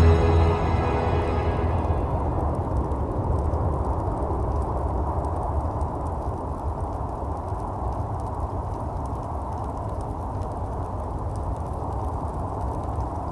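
A deep fire roars and rumbles steadily.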